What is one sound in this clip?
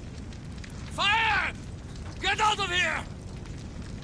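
A man shouts in alarm nearby.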